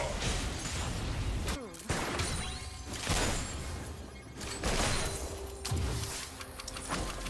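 Magic blasts whoosh and crackle in a fast-paced battle.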